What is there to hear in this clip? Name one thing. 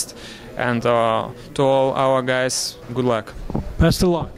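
A man speaks into a microphone up close.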